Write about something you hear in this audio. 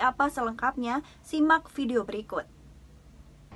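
A young woman speaks clearly and calmly into a close microphone.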